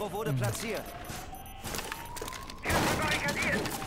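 Wooden planks splinter and crack as a barricade is smashed apart.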